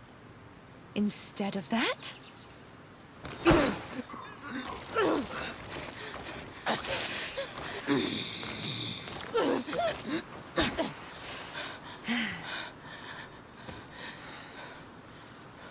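A woman speaks firmly and close by.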